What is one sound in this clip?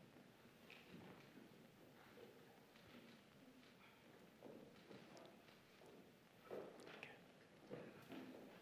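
An older man speaks calmly through a microphone in a large echoing hall.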